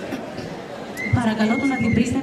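A man speaks into a microphone over loudspeakers in a large hall.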